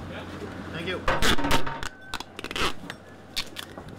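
Adhesive tape is pulled off a roll.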